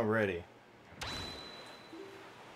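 A sail whooshes open.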